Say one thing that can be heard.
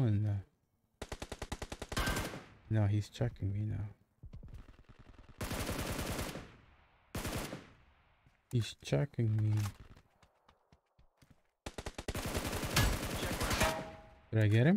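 Gunfire rattles in rapid bursts in a video game.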